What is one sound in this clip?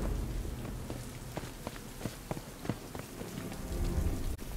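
Footsteps tap quickly on wet pavement.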